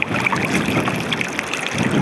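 Water drips and trickles from a lifted shoe.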